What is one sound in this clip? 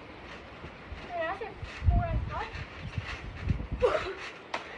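A trampoline mat thumps and creaks as a child bounces.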